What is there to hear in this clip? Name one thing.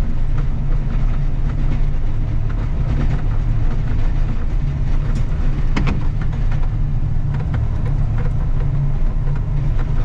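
A snow plough blade scrapes and crunches over snow and gravel.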